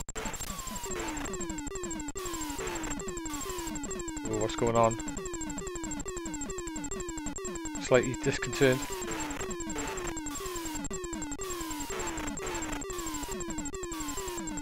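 Repeating falling electronic bleeps of retro game music play steadily.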